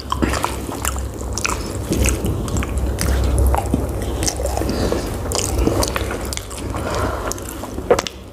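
A spoon scrapes against a bowl.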